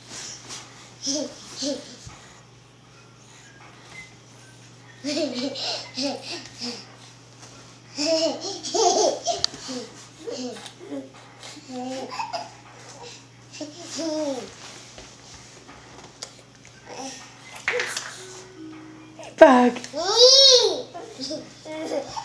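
Young children babble and chatter close by.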